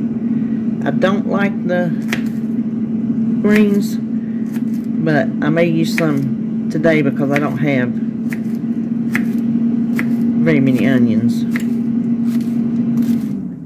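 A knife taps against a plastic cutting board.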